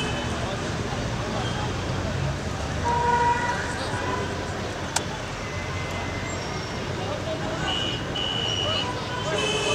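A crowd murmurs and chatters at a distance outdoors.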